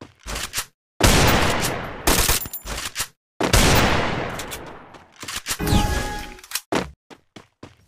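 Gunshots fire in rapid loud bursts.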